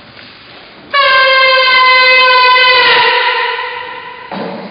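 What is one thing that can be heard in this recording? A woman sings a long, loud, high note in an echoing hall.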